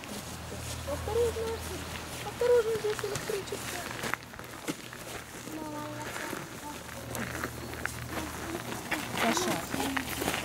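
Small children chatter and babble nearby.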